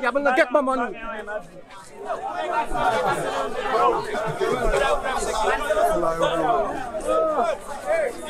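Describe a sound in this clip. A crowd of people talk and shout outdoors.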